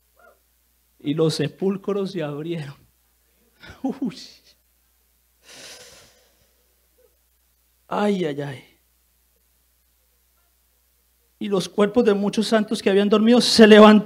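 A man speaks with emotion into a microphone, in bursts with long pauses, growing louder at the end.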